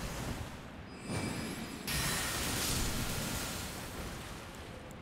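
A magic spell bursts with a bright, crackling whoosh.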